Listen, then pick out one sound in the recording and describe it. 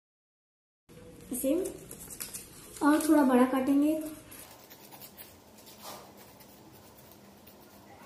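Scissors snip through paper.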